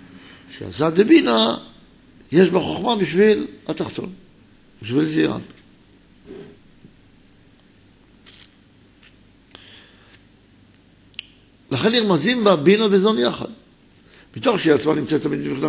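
A middle-aged man speaks calmly into a microphone, pausing between phrases.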